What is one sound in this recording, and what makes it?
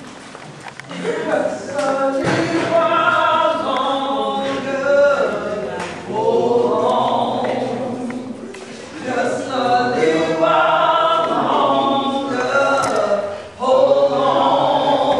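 A group of men and women sing together loudly.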